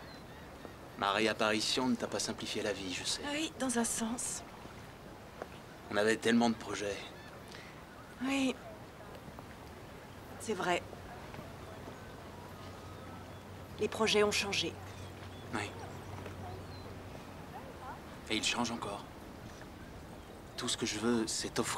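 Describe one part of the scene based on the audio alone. A woman answers softly up close.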